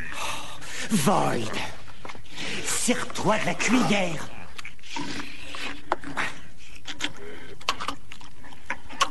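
Wet, squelching chewing and slurping sounds come and go close by.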